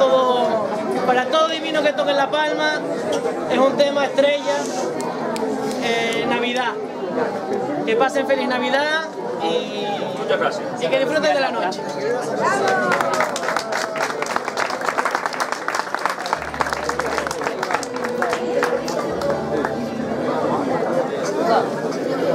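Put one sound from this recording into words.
Guitars and lutes strum together in a lively rhythm.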